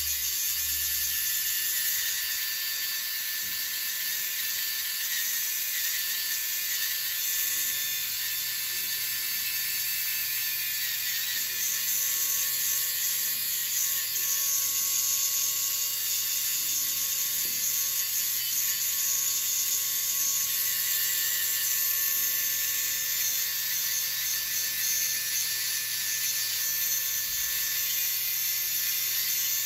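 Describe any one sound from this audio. A small electric nail drill whirs steadily in a high whine as it grinds a toenail.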